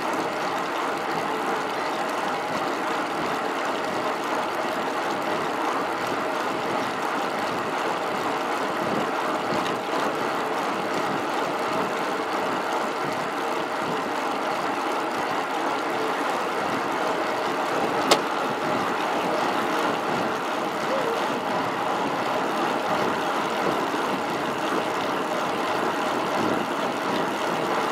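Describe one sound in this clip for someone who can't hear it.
Wind rushes steadily past a fast-moving bicycle.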